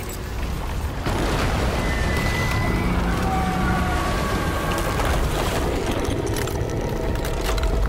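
A deep rumble roars as the ground bursts apart.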